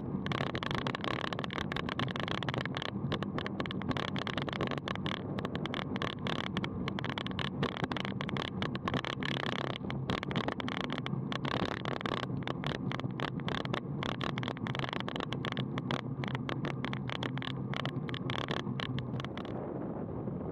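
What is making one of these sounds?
A bicycle rattles and clatters over a bumpy paved road.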